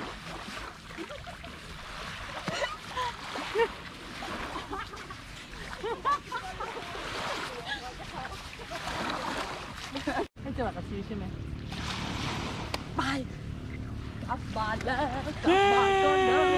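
Young women chatter and laugh nearby, outdoors.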